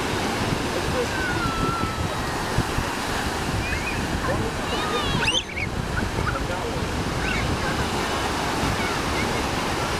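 Young children shout and squeal nearby.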